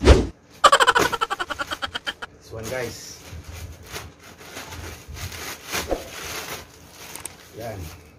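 Plastic wrapping crinkles in a man's hands.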